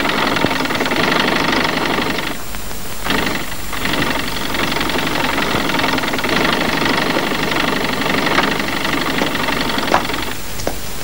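A sewing machine whirs steadily.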